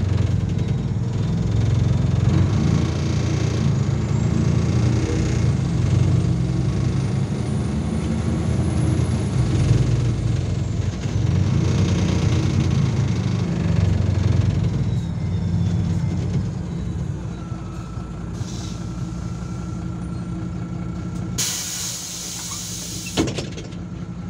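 A bus engine rumbles loudly while driving, then quiets as the bus slows to a stop.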